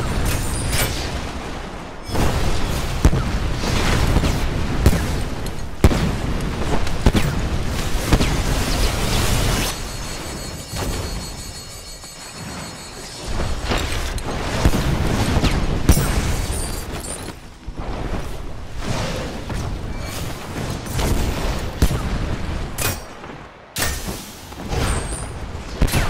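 Magic blasts and explosions boom and crackle in a video game.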